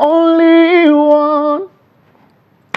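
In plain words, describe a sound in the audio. A young man sings a long, held note close to a microphone.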